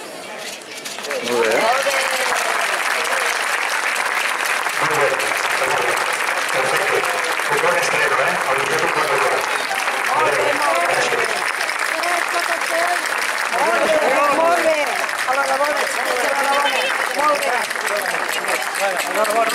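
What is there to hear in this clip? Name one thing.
An outdoor audience applauds steadily.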